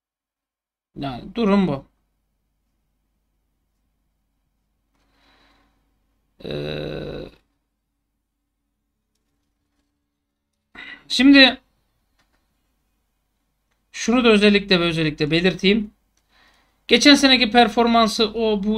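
A man speaks into a microphone close up, in short bursts with pauses.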